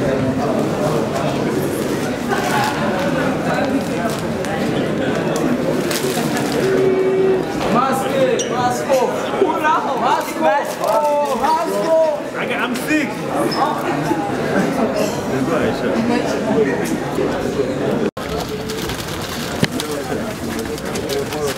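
A crowd of people chatters and cheers loudly nearby.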